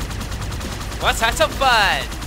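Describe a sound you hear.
Energy weapons fire in rapid, whooping electronic bursts.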